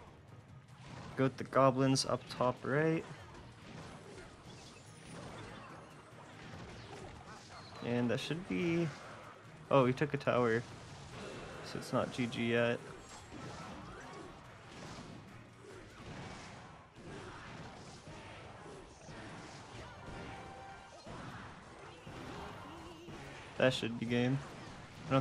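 Video game battle sounds of clashing and small blasts play quietly.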